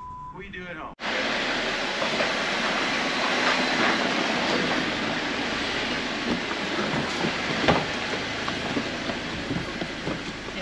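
An off-road vehicle's engine rumbles loudly nearby.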